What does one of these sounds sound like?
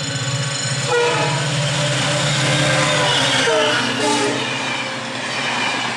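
Train wheels clatter past on the rails close by.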